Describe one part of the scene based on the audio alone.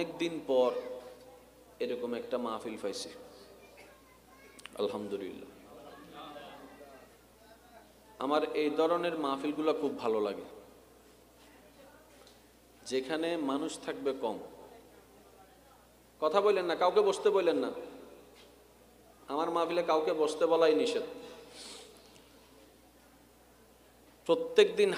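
A young man chants in a melodic voice into a microphone, in phrases with pauses, echoing slightly.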